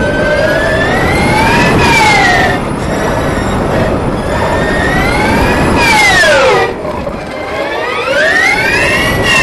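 A racing car's engine screams close by, revving up and down through the gears.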